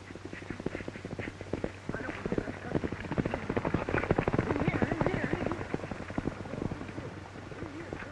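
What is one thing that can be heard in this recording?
Horses gallop across a field with pounding hooves.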